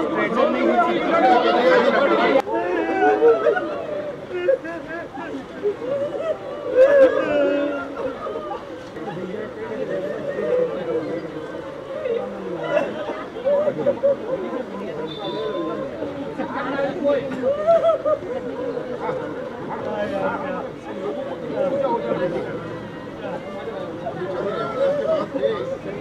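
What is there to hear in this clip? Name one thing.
A crowd of people murmur and talk nearby.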